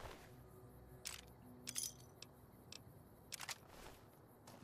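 Short game menu clicks tick a few times.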